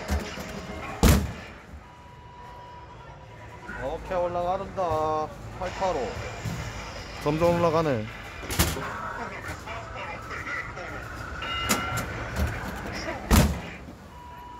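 A fist thumps hard into a boxing machine's punching pad.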